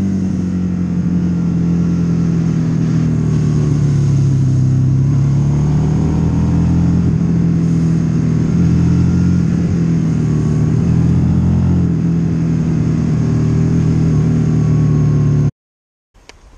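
A motorcycle engine drones steadily at speed.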